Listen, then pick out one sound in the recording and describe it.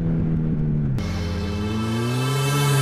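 A motorcycle engine revs up, rising in pitch.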